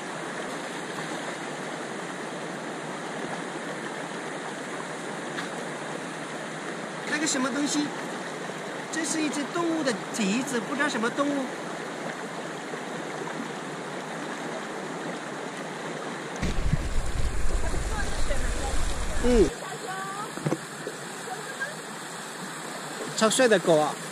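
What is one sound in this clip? Water rushes steadily over stones outdoors.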